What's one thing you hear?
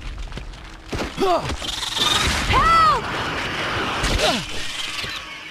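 A large beast snarls and roars several times.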